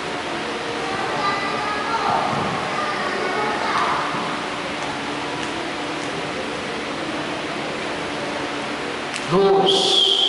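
An older man speaks through a microphone and loudspeaker in an echoing hall.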